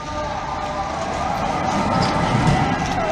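A tram rumbles past close by.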